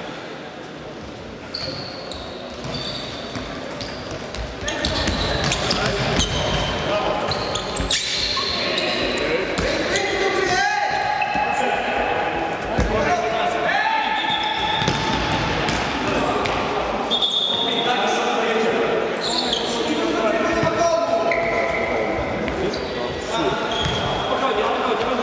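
A futsal ball is kicked and thuds in an echoing sports hall.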